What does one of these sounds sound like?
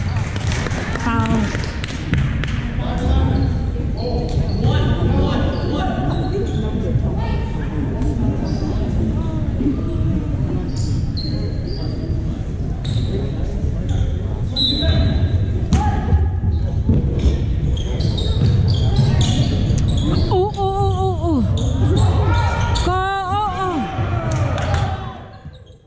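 A crowd of spectators chatters steadily in a large echoing gym.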